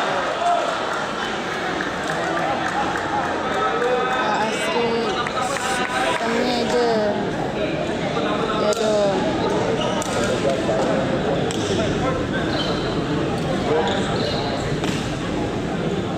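Young men call out to each other on the court.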